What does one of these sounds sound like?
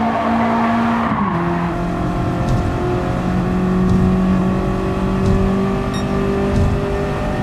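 A racing car engine roars at high revs, dipping in pitch once as it shifts gear, then holding steady.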